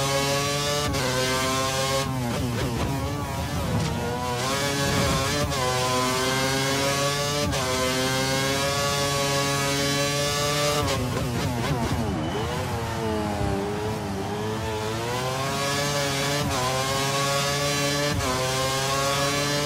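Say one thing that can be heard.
A racing car engine screams at high revs, rising through the gears and dropping sharply under braking.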